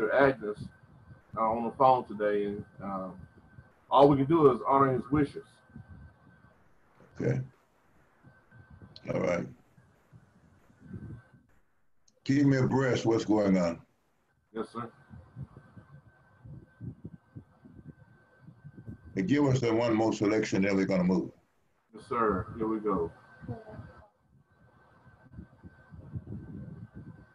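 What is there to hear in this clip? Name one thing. A middle-aged man speaks calmly over an online call.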